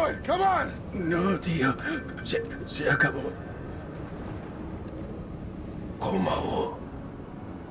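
A man speaks weakly and haltingly.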